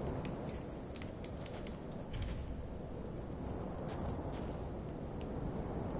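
Footsteps crunch quickly on rough ground.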